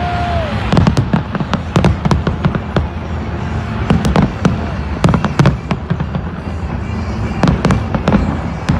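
Fireworks burst and crackle overhead in rapid booms.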